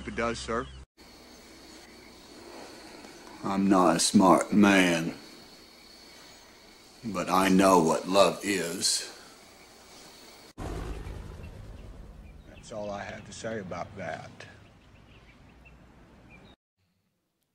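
A man speaks in a slow, calm voice.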